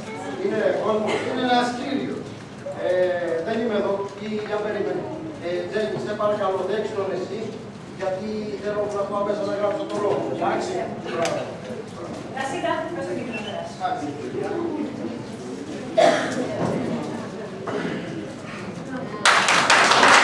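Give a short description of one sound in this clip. A woman speaks with animation on a stage in an echoing hall.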